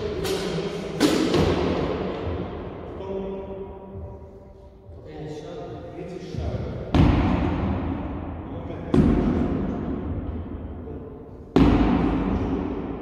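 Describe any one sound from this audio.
Something strikes a hanging tyre with a loud bang that echoes around a large hall.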